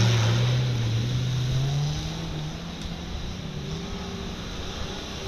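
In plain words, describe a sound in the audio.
A vehicle engine drones and revs, loud at first and then fading.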